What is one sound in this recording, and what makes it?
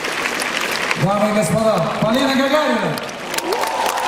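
A man sings through a microphone in a large hall.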